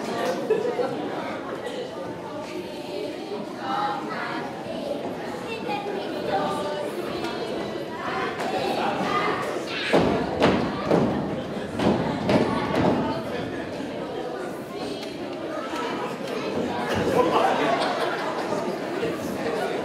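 Small feet shuffle and stamp on a wooden stage.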